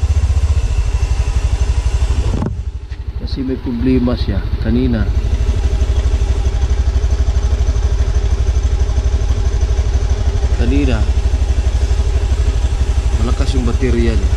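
A scooter engine idles with a steady, fast putter.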